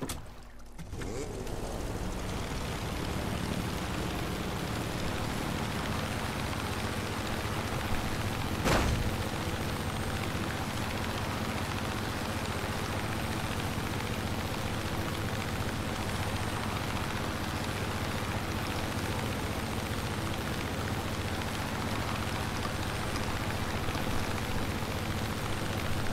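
Wind rushes past an open cockpit.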